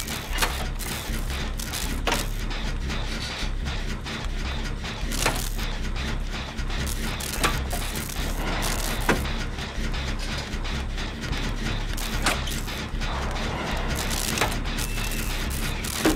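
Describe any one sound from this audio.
Metal parts of a machine rattle and clank with sharp clicks.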